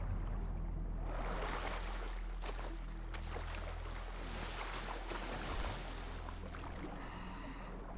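Water splashes and churns around a swimmer at the surface.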